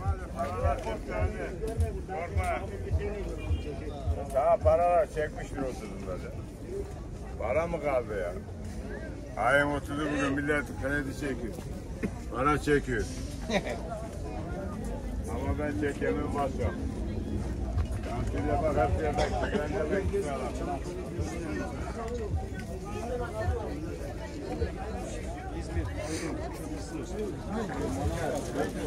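A crowd of people talks and murmurs nearby, outdoors.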